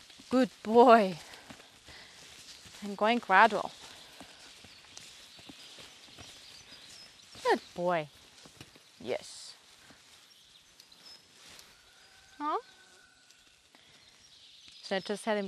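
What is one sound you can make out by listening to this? A young woman calls out loudly to a horse, close by.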